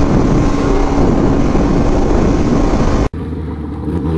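Wind roars loudly past a fast-moving motorcycle.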